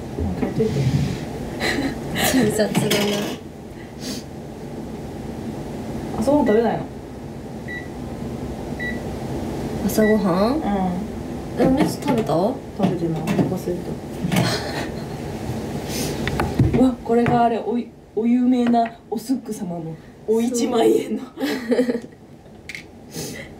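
A young woman talks casually and close by.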